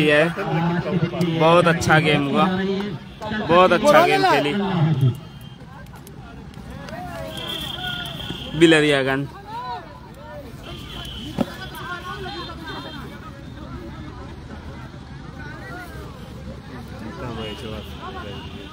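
A group of young men shout and cheer excitedly outdoors.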